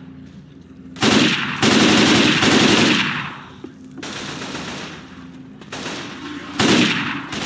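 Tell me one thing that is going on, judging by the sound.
An assault rifle fires in rapid bursts in a video game.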